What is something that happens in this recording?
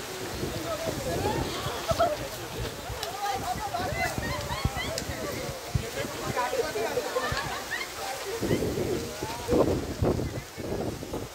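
Muddy water rushes and splashes over rocks.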